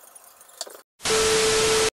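A television's static hisses loudly with a steady high beep.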